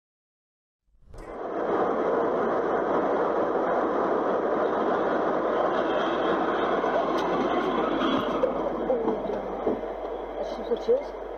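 Tyres rumble steadily on the road from inside a moving car.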